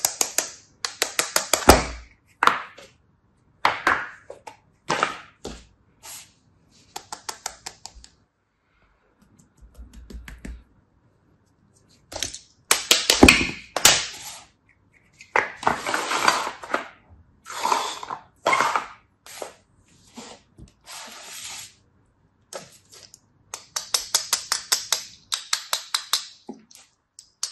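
Fingers squeeze and crumble sand with soft crunching.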